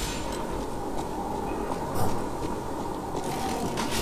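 Footsteps run across a rooftop.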